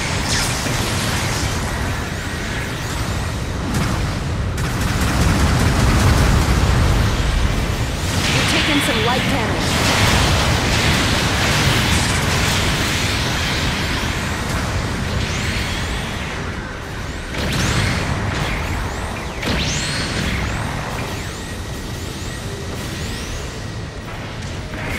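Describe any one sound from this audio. Rocket thrusters roar steadily.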